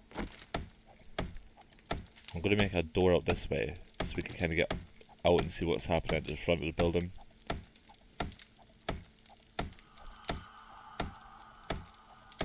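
A stone axe chops repeatedly against wood with sharp knocks.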